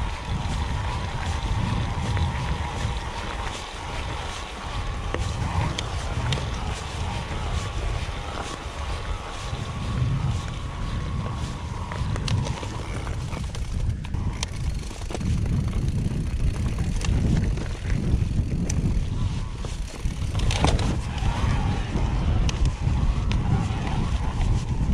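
A bicycle's parts rattle and clatter over bumps.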